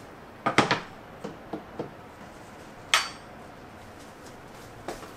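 Dishes and glasses clink and knock on a wooden tray.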